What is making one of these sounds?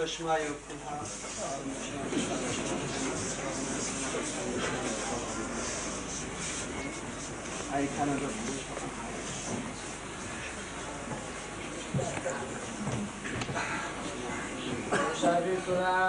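A group of people murmur and talk quietly.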